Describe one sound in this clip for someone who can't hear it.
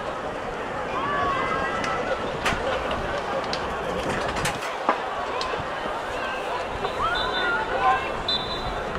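Women players shout across an open outdoor pitch.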